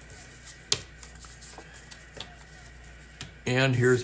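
Cards rustle as they are handled.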